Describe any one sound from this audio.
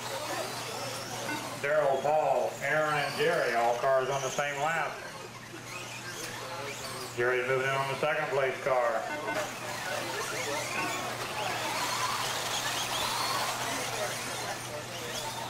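Small electric cars whine as they race over dirt.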